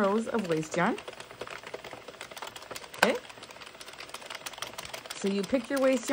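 A plastic knitting machine clicks and rattles as its carriage is turned.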